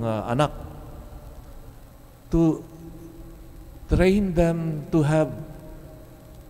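A middle-aged man speaks slowly and deliberately into a microphone, with pauses.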